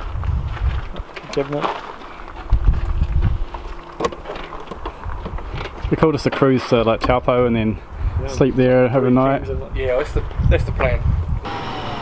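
A wooden cabinet door creaks and clicks open and shut.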